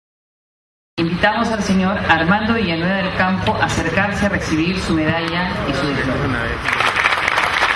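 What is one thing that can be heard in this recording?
A man speaks through a loudspeaker in a large hall.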